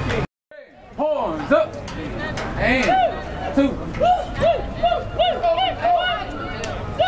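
A man shouts excitedly close by.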